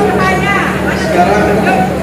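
A woman talks among a crowd.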